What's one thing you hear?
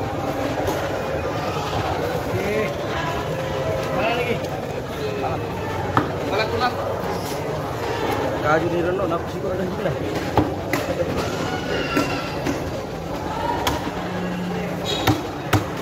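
A knife chops fish on a wooden block with sharp knocks.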